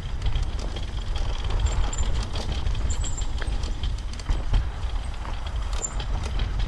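Wind buffets loudly with a low rumble throughout.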